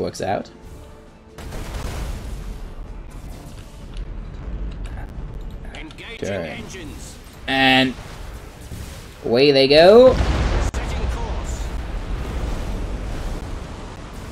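Explosions rumble low.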